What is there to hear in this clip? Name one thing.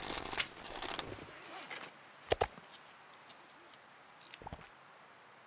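Food is chewed with wet crunching sounds.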